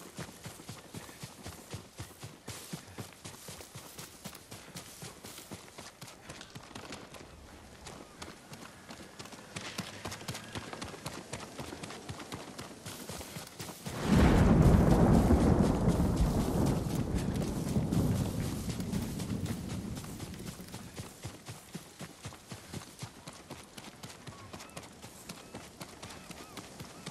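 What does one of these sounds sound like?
Wind blows through tall grass.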